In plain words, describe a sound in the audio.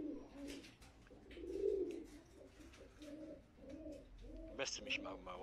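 Pigeons coo softly.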